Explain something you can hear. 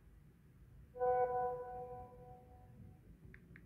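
A phone chimes once with a short message alert.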